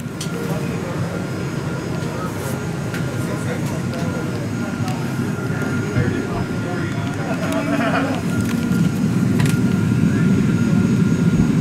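Passengers murmur and talk quietly nearby.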